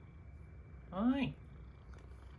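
A cat meows once loudly, close by.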